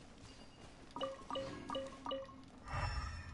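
Short bright chimes ring out one after another.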